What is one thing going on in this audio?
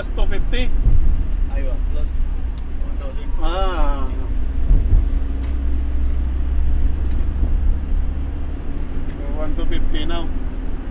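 A vehicle engine hums steadily from inside the cabin.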